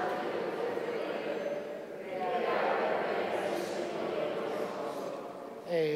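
An elderly man speaks slowly through a microphone in a large echoing hall.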